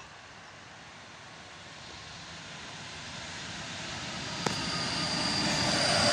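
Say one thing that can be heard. An electric train approaches on the tracks, growing steadily louder.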